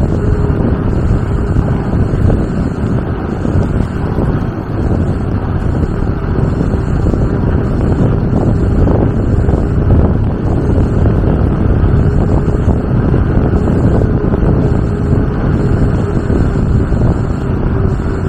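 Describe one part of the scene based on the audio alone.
Tyres roll on smooth pavement.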